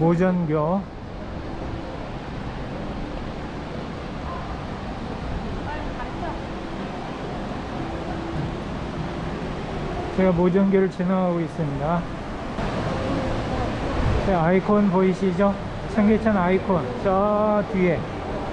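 Shallow water flows and babbles over stones.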